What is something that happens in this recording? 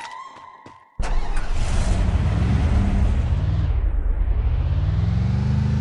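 A pickup truck engine drones and shifts in pitch as the truck drives.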